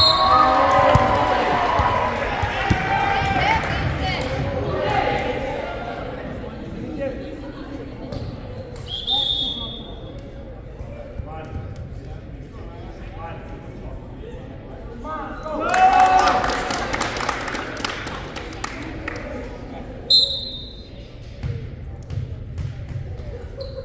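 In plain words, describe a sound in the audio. Spectators and players chatter and call out in a large echoing hall.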